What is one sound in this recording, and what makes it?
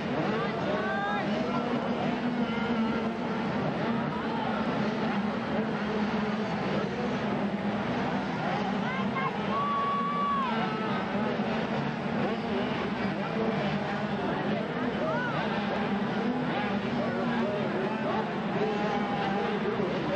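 Dirt bike engines rev and whine loudly, rising and falling in pitch.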